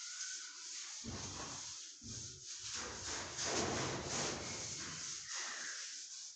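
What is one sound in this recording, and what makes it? A duster rubs across a board.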